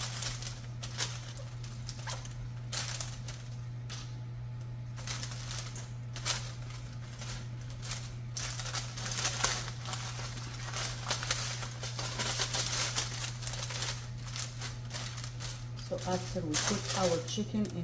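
Foil and paper crinkle and rustle under hands.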